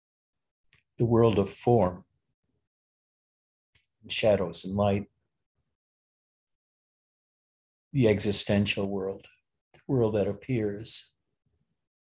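An elderly man speaks calmly and slowly in short phrases, close to the microphone.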